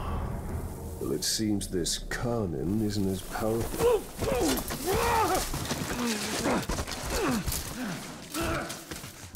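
A man speaks in a low, serious voice, close by.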